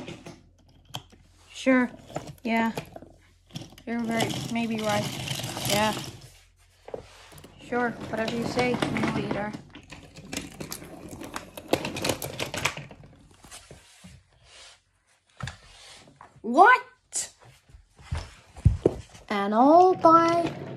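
Wooden toy train cars click and rattle along a wooden track.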